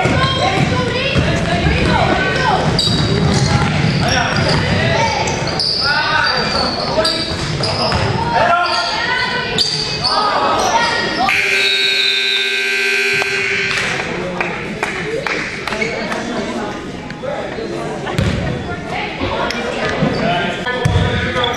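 Sneakers squeak sharply on a hard floor in a large echoing gym.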